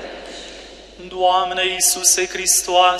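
A man chants through a microphone in an echoing hall.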